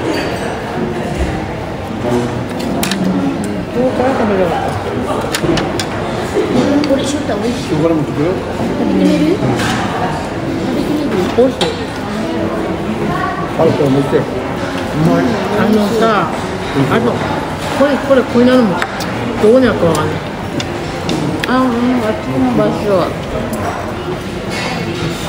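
Chopsticks and dishes clink on a table.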